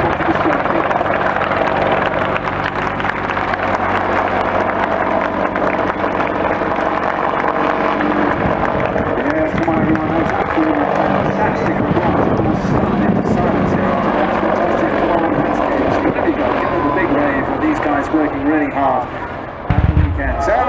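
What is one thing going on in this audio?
An attack helicopter flies low overhead, its rotor thumping and engines whining.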